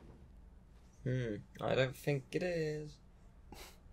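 A young man speaks calmly and evenly close by.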